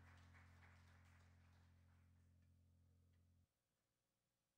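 An electric guitar chord rings out and fades, then cuts off.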